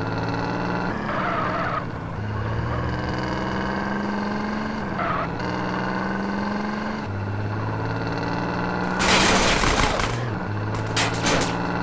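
Tyres screech as a pickup truck turns a corner.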